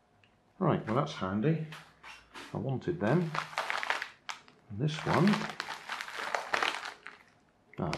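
A padded mailer rustles as it is handled.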